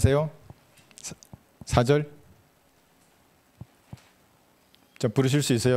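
A middle-aged man speaks calmly into a handheld microphone, in short phrases with pauses.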